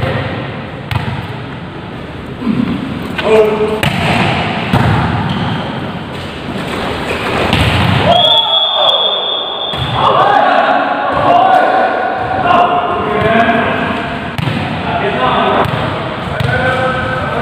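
A volleyball is struck with hard slaps in a large echoing hall.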